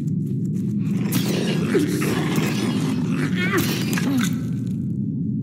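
A spear stabs a creature with wet, splashing thuds.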